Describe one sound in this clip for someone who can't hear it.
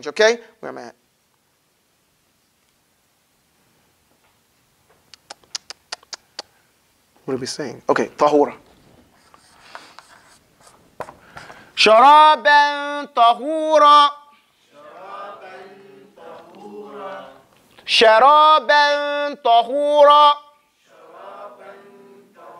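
A man speaks and chants loudly and clearly, close by.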